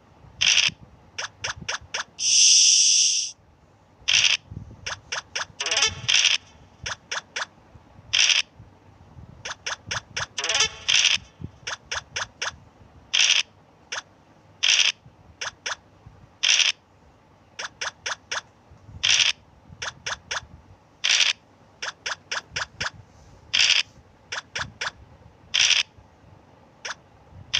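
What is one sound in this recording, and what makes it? Game pieces tap quickly as they hop along the board.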